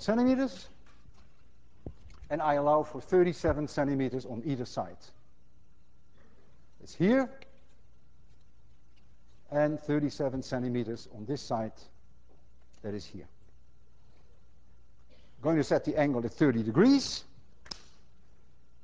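A man speaks calmly through a lapel microphone, in bursts with pauses.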